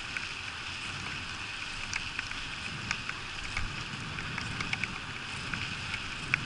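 Raindrops patter and tap close by, outdoors in wind.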